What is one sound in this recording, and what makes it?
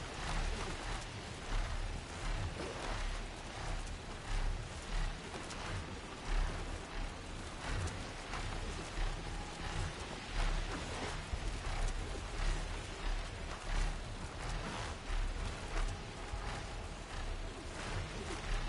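Wind rushes steadily past at high speed.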